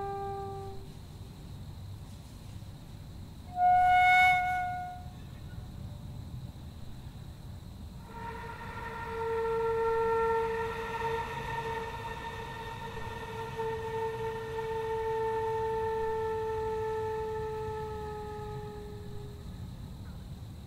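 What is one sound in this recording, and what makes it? A flute plays short notes, then one long, slowly fading held note.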